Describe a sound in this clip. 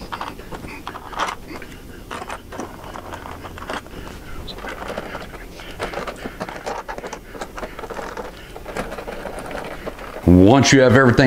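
Plastic parts click and knock lightly.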